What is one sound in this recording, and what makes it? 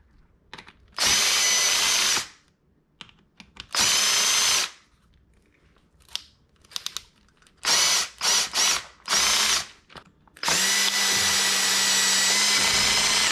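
A cordless drill whirs in short bursts, driving screws into plastic.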